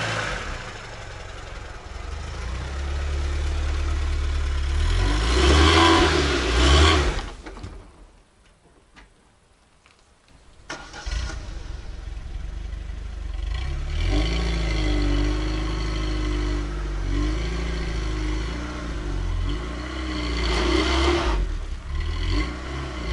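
A VAZ 2106 saloon's four-cylinder petrol engine runs as the car reverses and pulls away.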